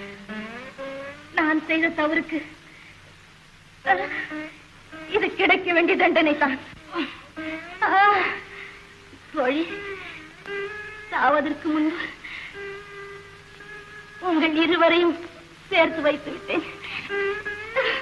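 A young woman cries and wails in distress.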